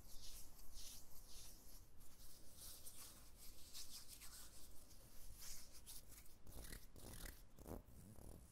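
Hands rub lotion into skin with a soft, swishing sound.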